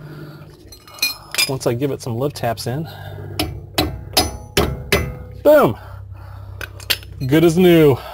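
Metal tools clink and knock against a car's brake parts.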